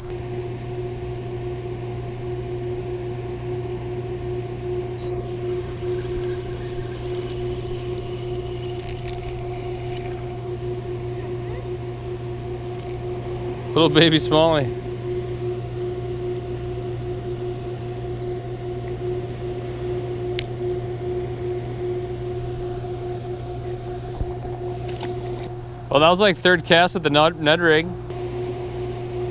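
Water rushes steadily over a weir nearby.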